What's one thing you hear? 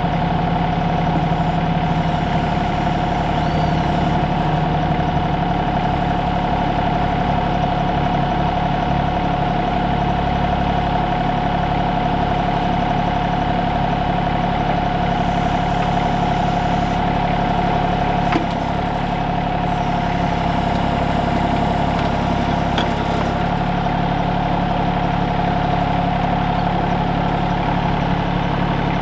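A hydraulic backhoe whines as its arm moves.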